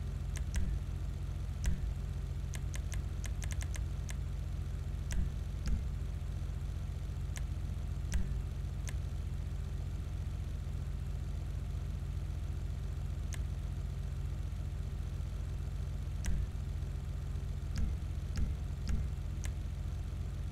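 Menu selections tick with short, sharp clicks.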